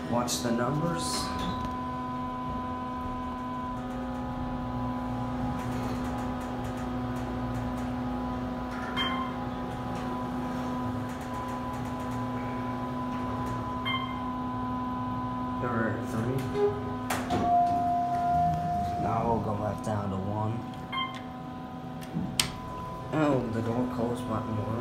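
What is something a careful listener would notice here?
An elevator hums steadily as it rides.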